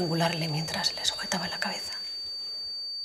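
A young woman speaks quietly nearby.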